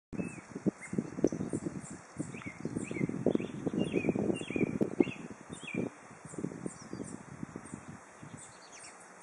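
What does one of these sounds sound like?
Birds chirp in short, repeated calls from the trees.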